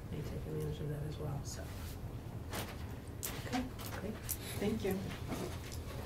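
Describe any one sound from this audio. A woman speaks calmly into a room microphone.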